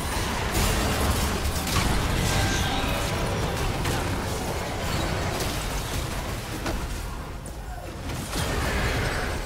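Game spell effects burst and whoosh in quick succession.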